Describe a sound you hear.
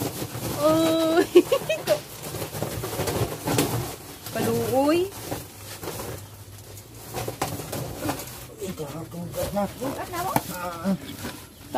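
A woman talks nearby in a casual way.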